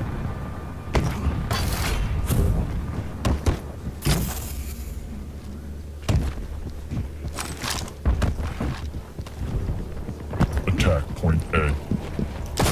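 A shotgun fires loud, sharp blasts.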